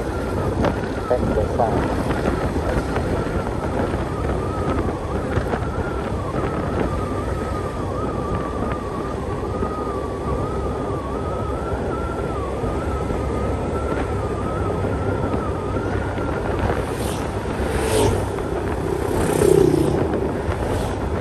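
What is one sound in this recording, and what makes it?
Wind and road noise rumble steadily while riding.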